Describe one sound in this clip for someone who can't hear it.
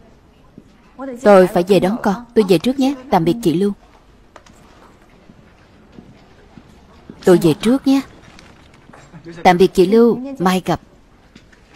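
A woman speaks casually across a quiet room.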